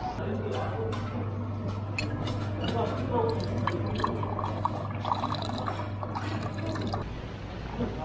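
A drink dispenser hums steadily.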